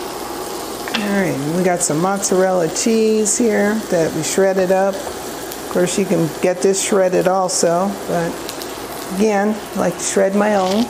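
A woman talks calmly and clearly into a nearby microphone.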